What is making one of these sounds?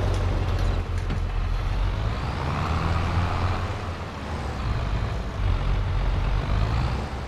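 A harrow rattles over rough ground.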